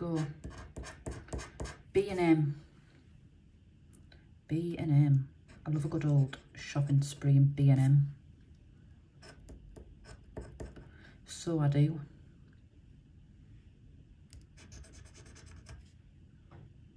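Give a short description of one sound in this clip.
A metal tool scratches at a card with short, dry scraping sounds.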